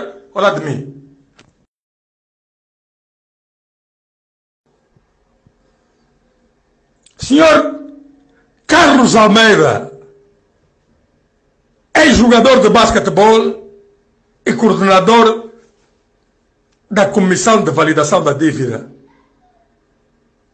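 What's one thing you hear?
A man speaks in short bursts through a microphone, with pauses between them.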